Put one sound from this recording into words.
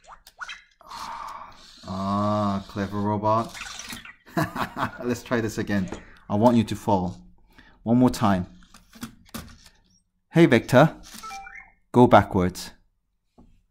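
A small toy robot chirps and babbles in a high electronic voice.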